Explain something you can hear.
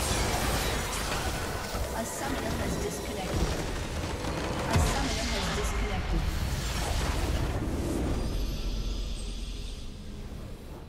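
Magic blasts crash and whoosh in a busy fight.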